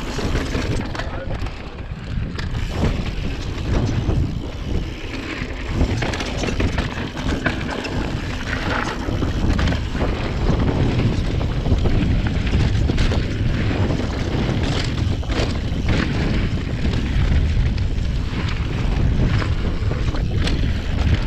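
Bicycle tyres crunch and rumble over a rough gravel trail.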